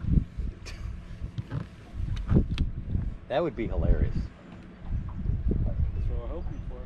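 Wind rumbles outdoors on open water.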